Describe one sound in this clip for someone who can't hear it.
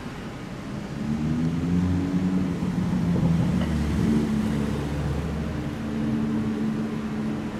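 A sports car engine burbles and revs as it drives off.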